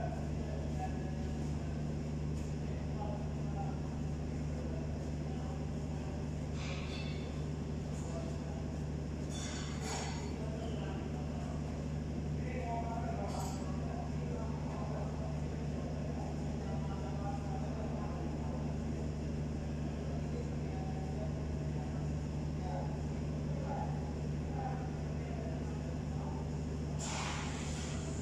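A car engine idles steadily with a low hum.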